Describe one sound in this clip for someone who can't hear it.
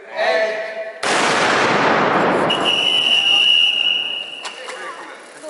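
A group of people cheers.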